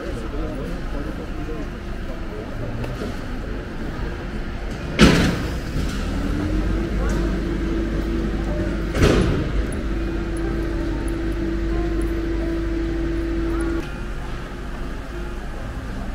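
People murmur faintly in the distance outdoors.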